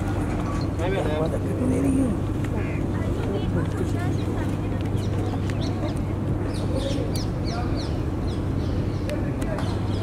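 A young woman chats casually nearby.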